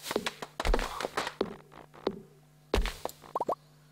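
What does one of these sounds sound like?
Sharp chopping thuds strike wood and leaves in quick succession.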